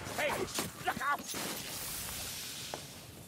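A magic blast whooshes and crackles.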